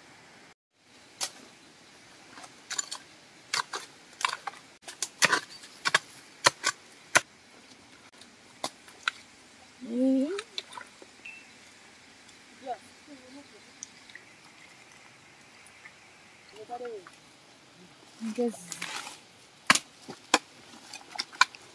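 A tool scrapes and knocks into soil.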